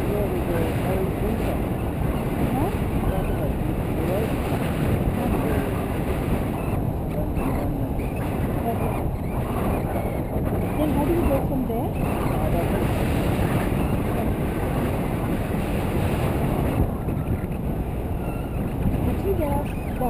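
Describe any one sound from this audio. Wind roars steadily and loudly against a microphone.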